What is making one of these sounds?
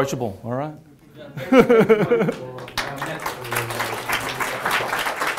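A man speaks to an audience through a microphone.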